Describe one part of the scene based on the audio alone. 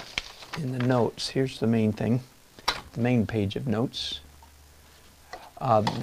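A sheet of paper rustles in a hand.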